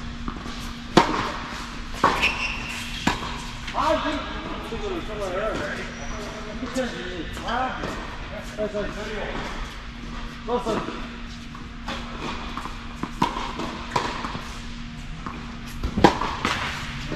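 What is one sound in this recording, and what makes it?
Tennis balls pop off rackets in a large echoing indoor hall.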